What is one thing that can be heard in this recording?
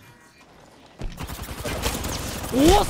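Gunshots ring out from a game.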